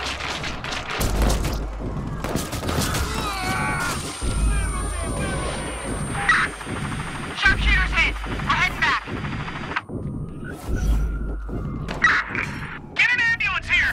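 Gunshots crack repeatedly nearby.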